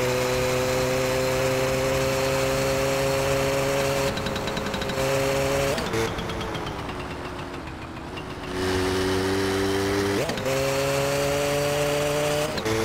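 A small motorbike engine hums steadily, dropping in pitch and then revving up again.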